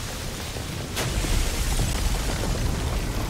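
Rubble bursts and crashes apart, scattering debris.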